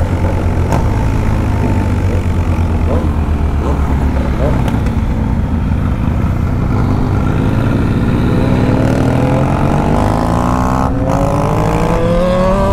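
Wind rushes past a rider outdoors.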